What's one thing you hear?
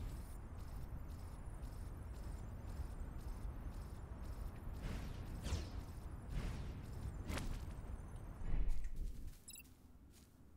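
A steady rushing whoosh of wind sweeps past while gliding fast through the air.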